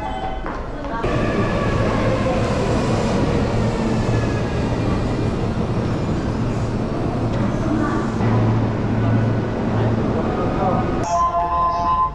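Many footsteps shuffle on a hard floor.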